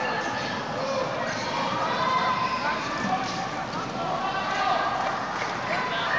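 A crowd murmurs and shouts in a large echoing gym.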